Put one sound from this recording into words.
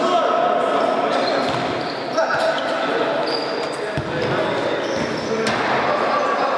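A ball is kicked with a sharp thud in an echoing hall.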